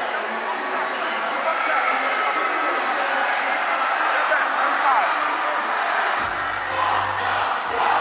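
A man raps loudly into a microphone over a loudspeaker.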